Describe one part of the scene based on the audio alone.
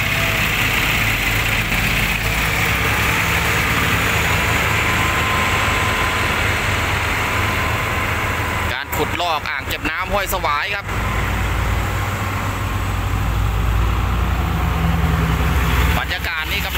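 A diesel dump truck idles.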